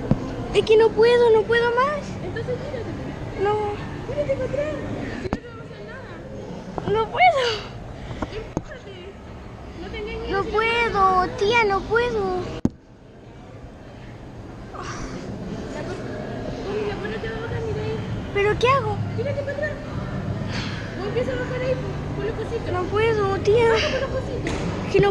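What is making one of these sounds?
A young girl talks and chatters close by.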